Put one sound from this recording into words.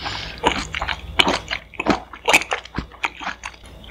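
A young woman chews noodles wetly close to a microphone.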